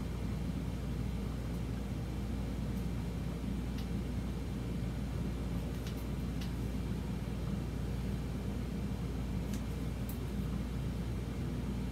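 Scissors snip through hair close by.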